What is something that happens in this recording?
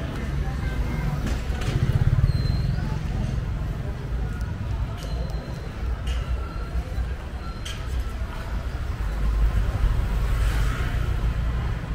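A motorbike engine rumbles and passes close by.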